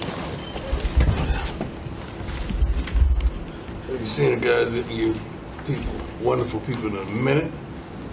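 Papers rustle on a table.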